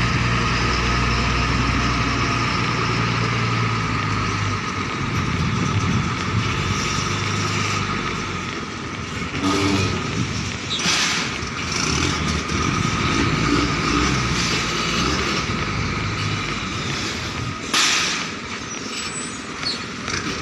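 A truck pulling a trailer drives slowly past.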